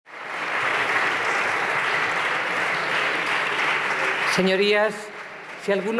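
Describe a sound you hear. A crowd applauds loudly in a large hall.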